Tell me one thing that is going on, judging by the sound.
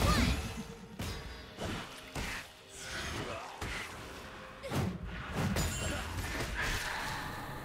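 Game spells and weapon hits crackle and thud in a busy fight.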